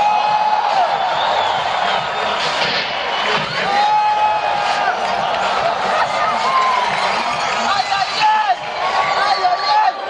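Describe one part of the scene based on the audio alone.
A large crowd cheers and screams loudly in a big hall.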